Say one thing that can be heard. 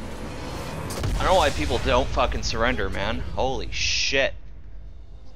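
A huge explosion booms and rumbles.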